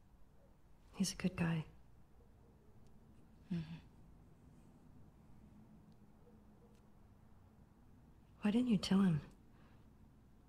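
A young woman speaks quietly and hesitantly.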